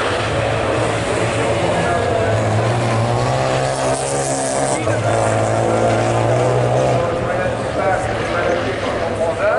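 Racing car engines roar and whine nearby.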